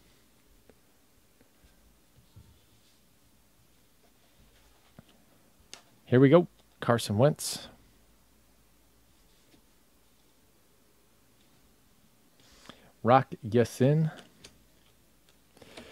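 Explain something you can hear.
Trading cards rustle and flick softly as they are shuffled by hand.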